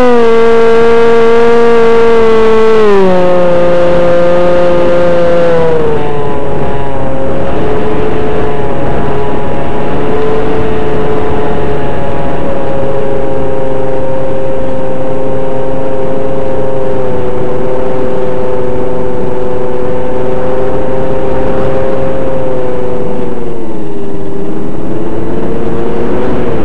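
Small electric motors whine steadily close by, their pitch dropping and shifting now and then.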